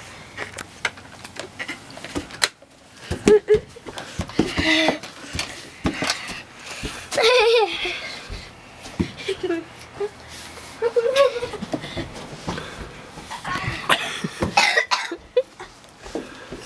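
A young boy laughs excitedly close by.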